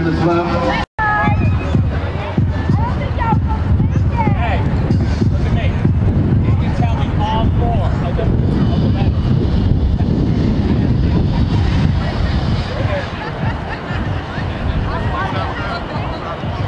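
A crowd of men, women and children chatters outdoors.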